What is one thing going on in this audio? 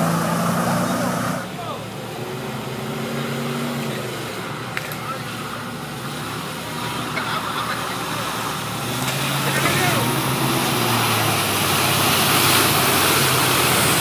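An engine rumbles as a truck drives through water.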